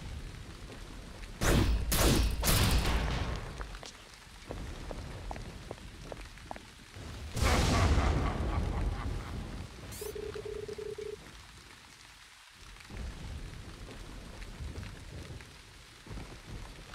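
Heavy rain falls steadily.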